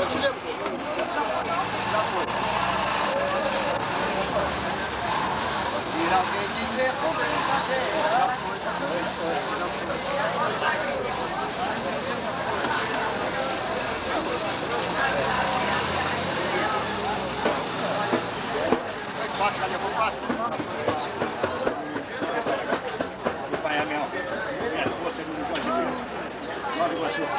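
A man plays hand drums with a steady beat.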